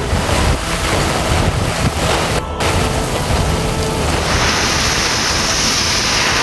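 Strong wind roars and gusts.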